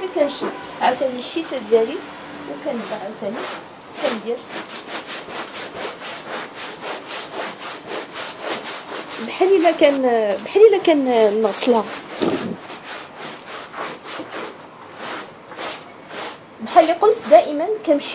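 A stiff brush scrubs back and forth over a carpet.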